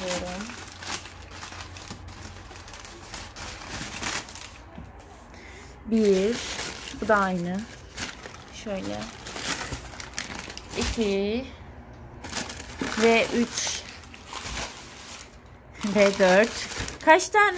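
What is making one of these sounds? Plastic bags rustle and crinkle as they are handled.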